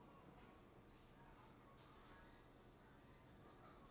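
A brush swishes softly across skin.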